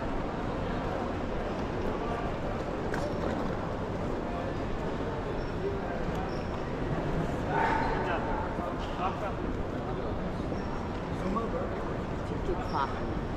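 Suitcase wheels roll and rattle over a hard floor.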